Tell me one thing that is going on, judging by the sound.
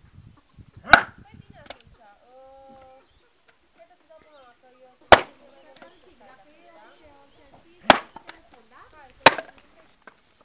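An axe splits logs on a wooden chopping block with sharp blows.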